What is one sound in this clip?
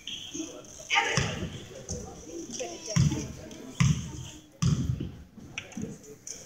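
A basketball bounces on a hard wooden floor in an echoing hall.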